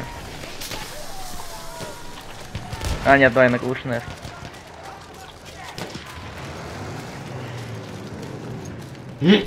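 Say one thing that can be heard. Distant gunfire and explosions rumble across a battlefield.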